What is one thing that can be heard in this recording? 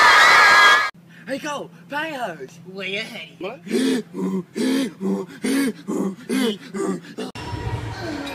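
A young man sings rhythmically.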